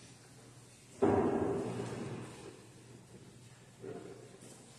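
A chord rings out on an organ in an echoing hall and slowly fades.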